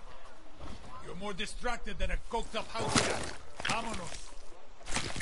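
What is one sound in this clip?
A man talks animatedly into a microphone.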